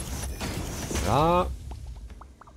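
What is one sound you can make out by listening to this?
A machine powers up with a quick rising whine.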